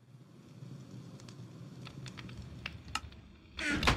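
A wooden chest lid creaks shut.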